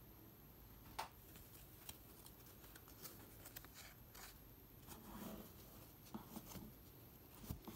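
Trading cards rustle and slap softly as a hand shuffles through a stack.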